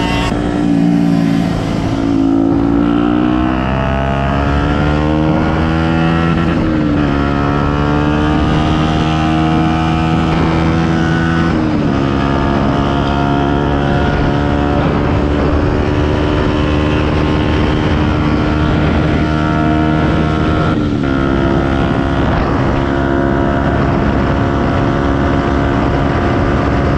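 A motorcycle engine roars loudly, revving up and shifting through gears.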